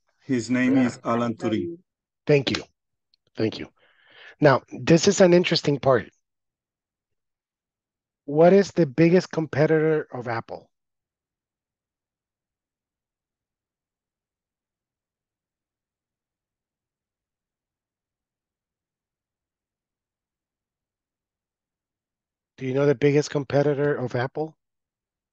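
A man speaks calmly over an online call, in short bursts with long pauses.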